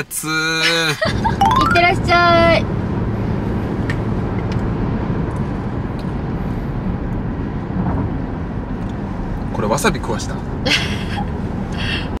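A car interior hums with a steady low road rumble.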